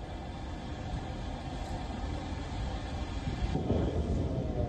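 A large fire roars and rumbles outdoors.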